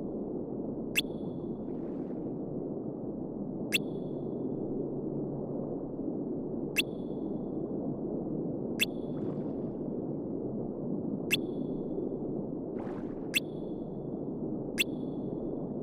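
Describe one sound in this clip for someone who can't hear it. A short electronic blip sounds each time a line of text advances.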